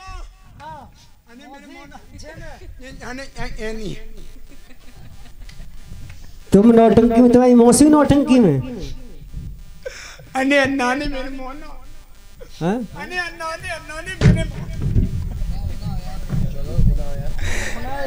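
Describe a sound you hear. A woman sings through a loudspeaker.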